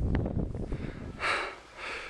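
Skis swish across snow.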